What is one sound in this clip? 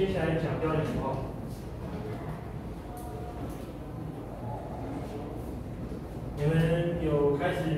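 A man lectures loudly in a room with some echo.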